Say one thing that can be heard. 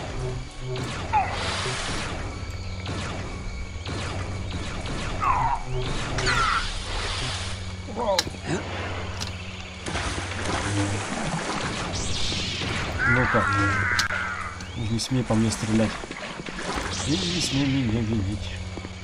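A lightsaber swooshes through the air in quick swings.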